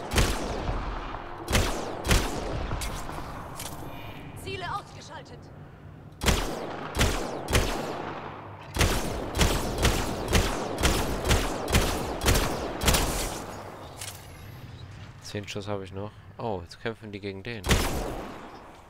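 A rifle fires loud, sharp shots again and again.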